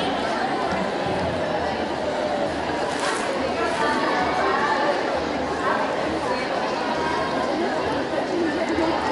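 A large crowd of marchers chants and talks loudly outdoors.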